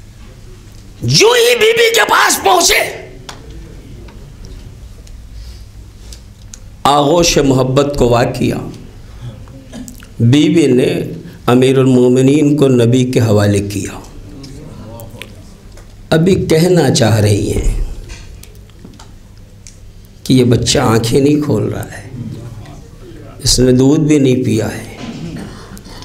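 A man speaks emotionally into a microphone in phrases with pauses, his voice ringing in an echoing hall.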